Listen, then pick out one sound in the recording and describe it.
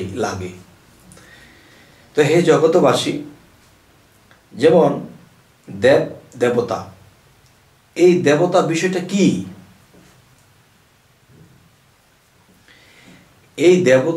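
A man speaks with animation close to a microphone, in bursts with pauses.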